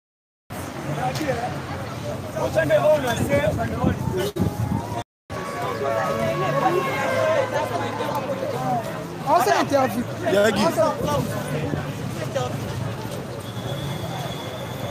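A crowd of men and women chants and shouts outdoors.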